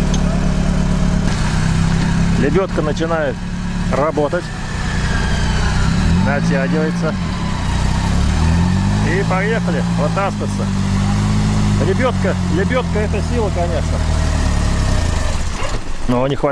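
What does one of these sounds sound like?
An off-road vehicle's engine roars and revs up and down.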